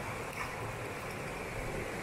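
Water splashes as fish pieces are rinsed.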